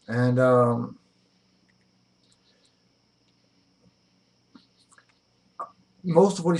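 A middle-aged man speaks close to a microphone, pausing between phrases.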